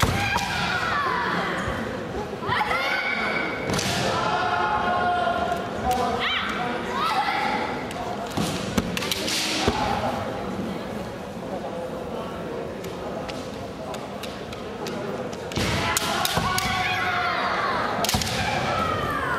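Bamboo swords clack sharply against each other.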